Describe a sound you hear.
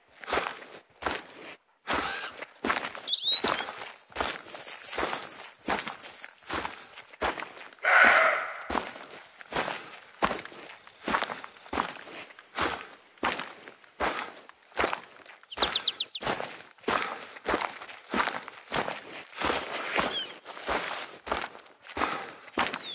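Footsteps swish through tall grass at a steady walking pace.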